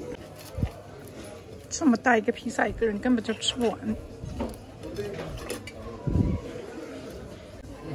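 A knife and fork scrape against a plate.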